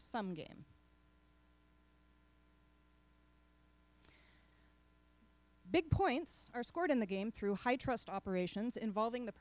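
A young woman speaks calmly into a microphone, heard through loudspeakers in a room.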